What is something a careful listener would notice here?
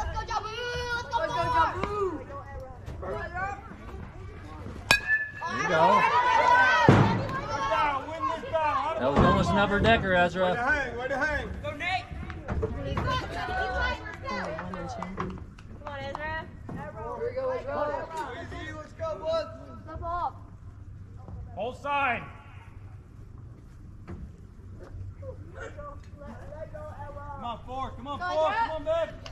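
Men and women nearby talk and call out.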